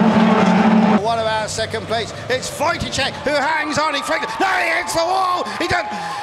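Truck engines rev and roar as racing trucks drive past.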